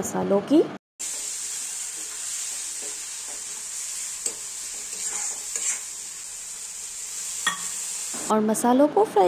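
A metal spatula scrapes and stirs in a pan.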